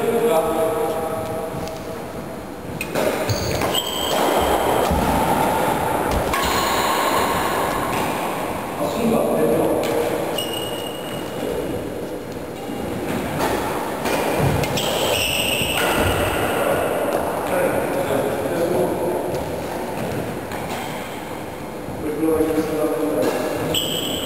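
Badminton rackets strike a shuttlecock in a large echoing hall.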